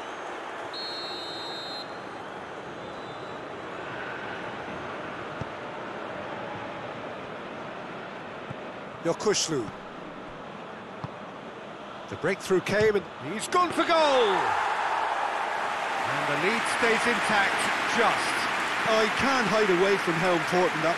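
A stadium crowd murmurs and roars.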